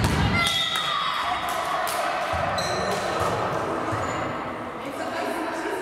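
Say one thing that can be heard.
Young women call out and cheer in a large echoing hall.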